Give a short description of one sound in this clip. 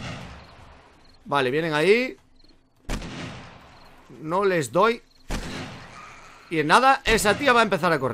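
A rifle fires single loud shots that ring out and fade.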